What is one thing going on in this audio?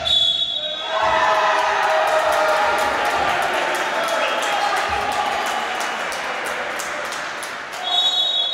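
Spectators cheer and shout in an echoing hall.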